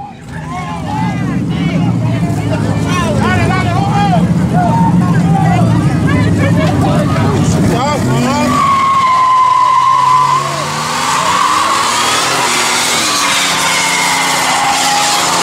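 A car engine idles with a deep rumble and revs loudly.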